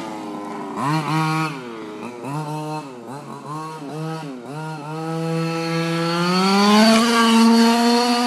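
A small remote-controlled car's motor whines, revving up and down.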